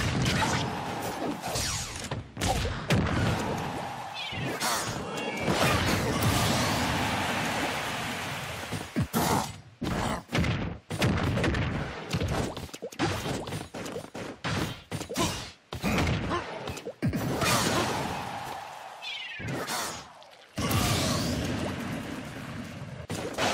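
Punches and kicks from a video game fight land with sharp cracks and thuds.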